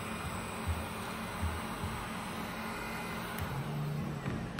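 A heat gun blows with a steady hiss.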